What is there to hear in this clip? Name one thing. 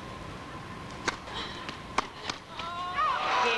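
A tennis ball is struck sharply back and forth with rackets in a large hall.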